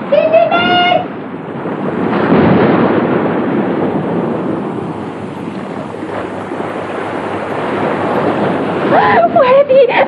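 Sea waves wash steadily.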